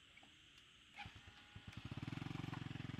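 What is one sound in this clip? A small step-through motorbike engine starts up.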